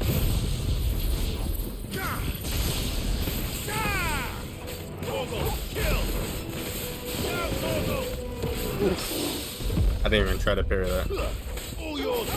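Electric bolts crackle and sizzle.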